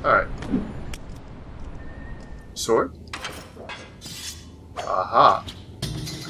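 Blades swish and clash in quick strikes.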